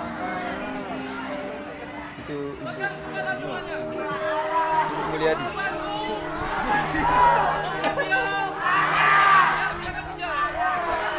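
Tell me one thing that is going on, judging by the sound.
A man shouts instructions to a crowd through a loudspeaker.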